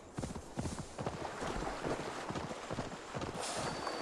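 Water splashes as a horse wades through a shallow river.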